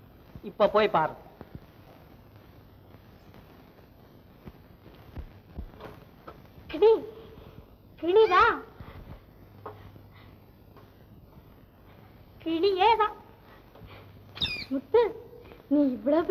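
A woman speaks playfully and with animation, close by.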